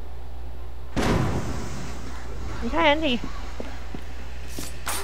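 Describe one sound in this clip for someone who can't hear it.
A smoke bomb bursts with a loud hiss.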